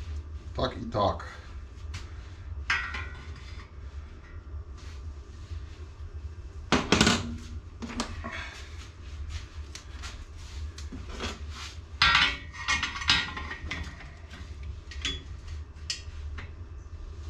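Metal parts clank and scrape against a steel bar.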